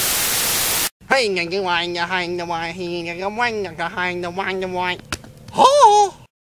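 A young man talks animatedly close by.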